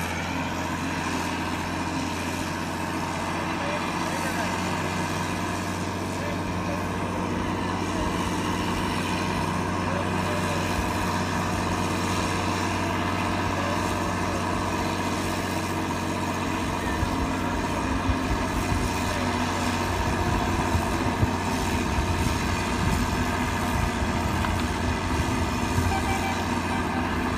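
A logging carriage engine drones steadily overhead.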